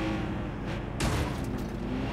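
A car crashes into another car with a loud bang.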